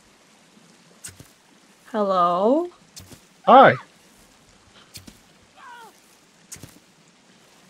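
A bowstring snaps as an arrow is shot, several times.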